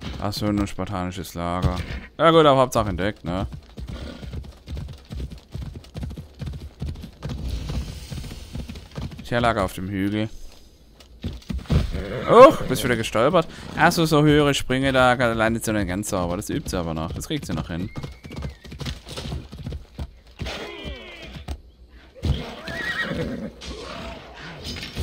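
Hooves clop steadily as a horse trots over grass and rocky ground.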